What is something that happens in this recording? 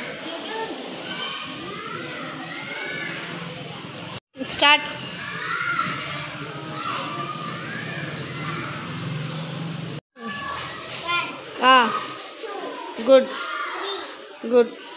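Young children talk and chatter nearby.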